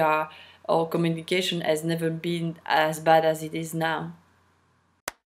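A woman speaks calmly and closely, as if over an online call.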